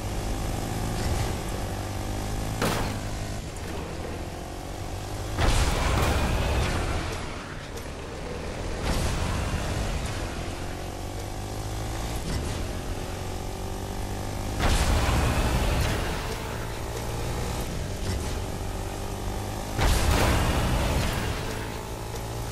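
A quad bike engine hums and revs steadily.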